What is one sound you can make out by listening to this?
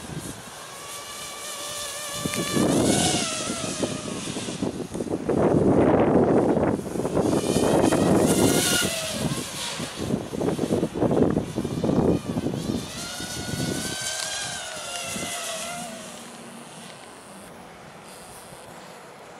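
A small model plane's engine whines overhead, rising and falling in pitch as it passes.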